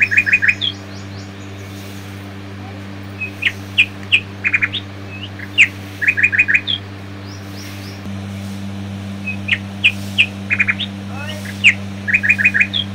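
An air cooler hums steadily.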